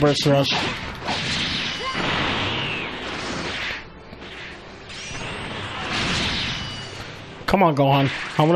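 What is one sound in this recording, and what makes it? Energy blasts whoosh and roar.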